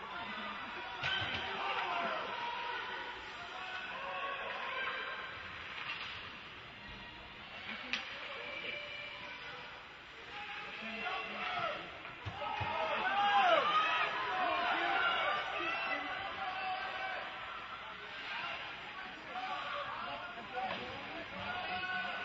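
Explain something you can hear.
A crowd of spectators shouts and chatters in a large echoing arena.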